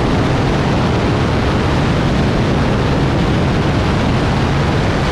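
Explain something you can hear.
Wind rushes past an aircraft in flight.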